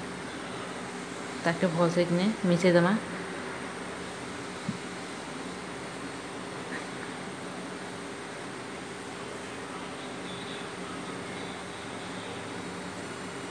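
Hands toss vegetable pieces around in a metal bowl.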